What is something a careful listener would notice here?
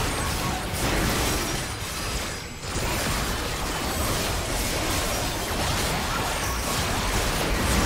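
Fantasy battle sound effects of spells and clashing blows crackle and boom without pause.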